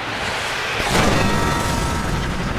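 A bullet explodes a part of a truck with a loud blast.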